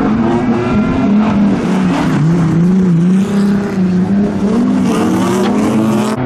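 A car crashes and tumbles onto its side with a loud scraping thud.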